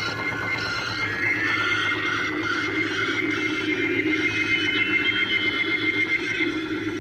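An electronic toy spider buzzes and hisses steadily.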